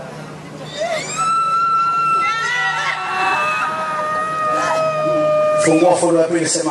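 A man chants in long drawn-out tones through a loudspeaker.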